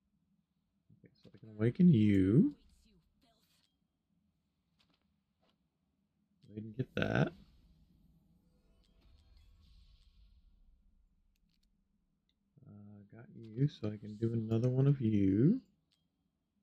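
A middle-aged man talks into a nearby microphone with animation, in short bursts.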